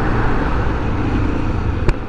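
A large truck rumbles past close by.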